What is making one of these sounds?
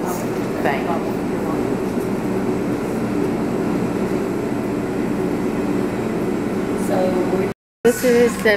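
A refrigerated food counter hums steadily.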